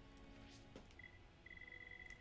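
A short electronic tone beeps twice.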